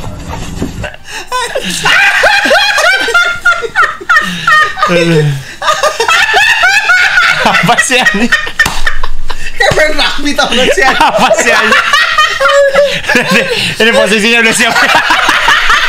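Young men laugh loudly together close by.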